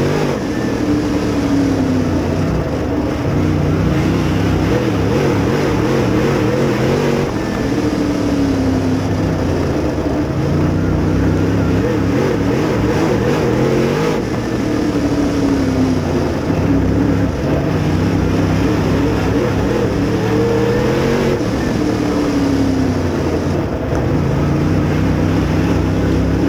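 A dirt late model race car's V8 engine roars from inside the cockpit, rising and falling through the turns.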